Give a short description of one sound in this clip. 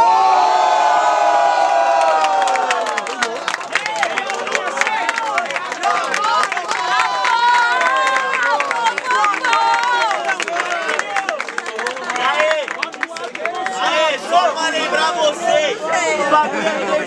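A crowd of young people cheers and shouts.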